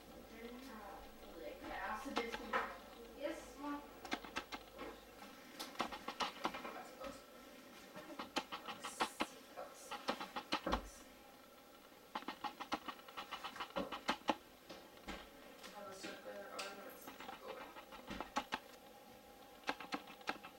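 A puppy's claws click and patter on a wooden floor.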